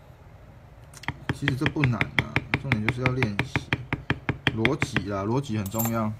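A mallet taps rapidly and steadily on a leather stamping tool.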